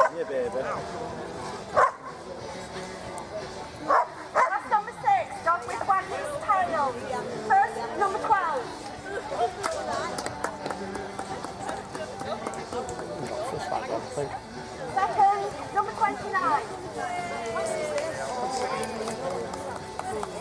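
Men, women and children chat in a crowd outdoors.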